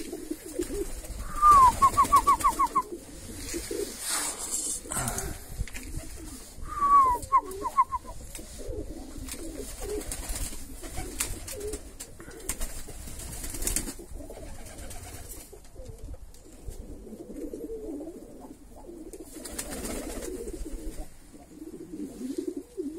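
Domestic pigeons coo.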